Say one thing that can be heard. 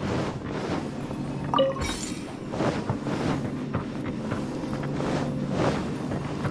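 A magical shield hums and crackles around a game character.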